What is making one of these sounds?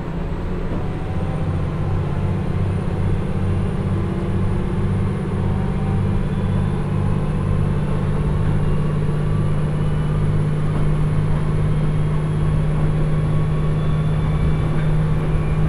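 Train wheels clatter rhythmically over the rails, growing faster.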